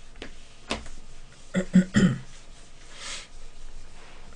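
An eraser rubs against a whiteboard.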